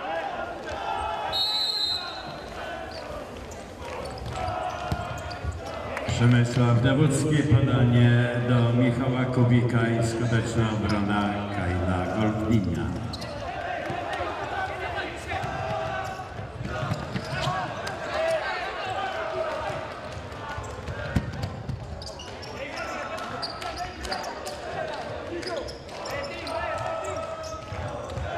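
A ball thuds as it is kicked on a hard floor.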